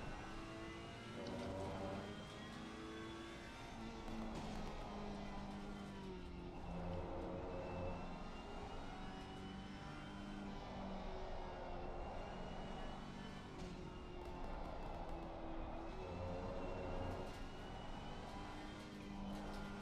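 A racing car engine roars and whines, rising and falling in pitch as it shifts gears.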